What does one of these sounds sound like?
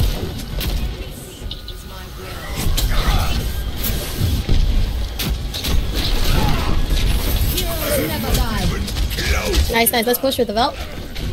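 A heavy gun fires in rapid, rumbling bursts.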